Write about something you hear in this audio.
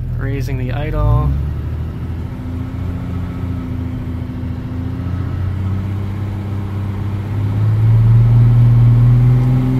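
A car engine idles with a low, steady hum that grows louder toward the end.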